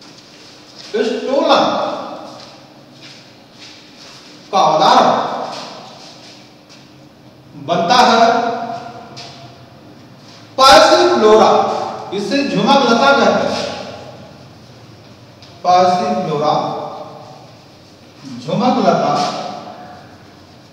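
A man speaks loudly and with emphasis in short bursts, in a room with some echo.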